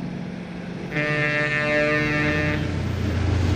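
A truck horn blares loudly.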